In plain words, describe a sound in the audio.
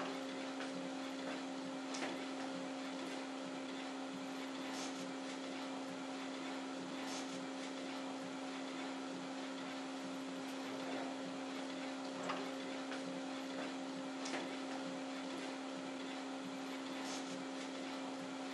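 A printer hums steadily.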